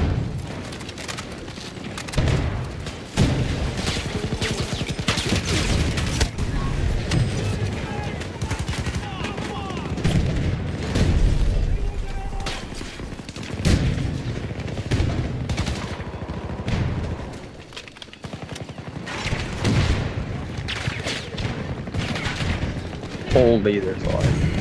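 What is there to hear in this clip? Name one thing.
Rapid gunfire crackles loudly and sharply.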